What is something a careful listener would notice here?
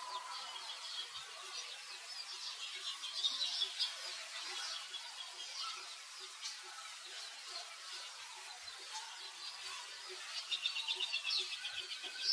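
A baby monkey squeaks and whimpers close by.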